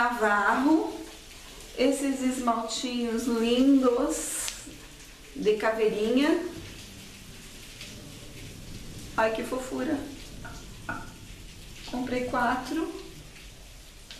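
A woman speaks with animation close to the microphone.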